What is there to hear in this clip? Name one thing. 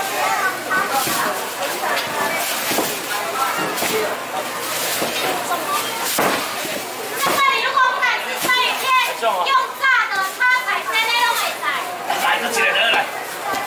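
Plastic bags rustle.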